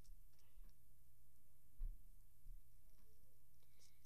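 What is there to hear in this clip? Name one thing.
A pencil writes on paper.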